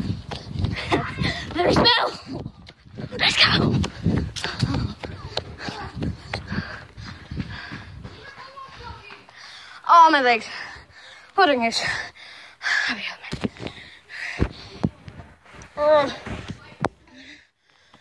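A young boy talks and exclaims with excitement close by.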